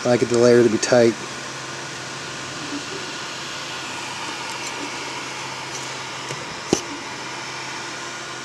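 A 3D printer's motors hum as the print head moves.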